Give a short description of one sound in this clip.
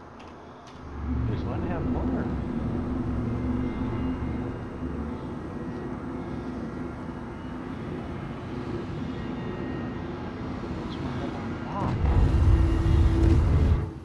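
A spacecraft engine rumbles low and steadily, growing louder near the end.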